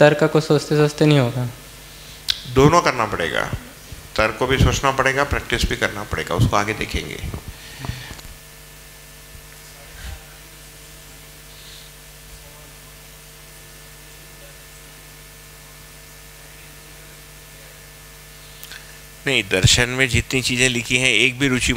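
A young man speaks calmly through a headset microphone.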